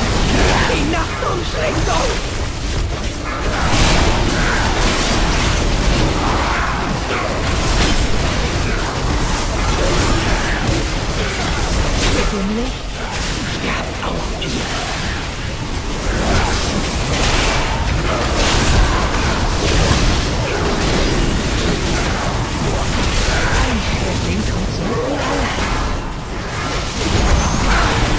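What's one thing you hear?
Magic spells crackle and boom in a busy battle.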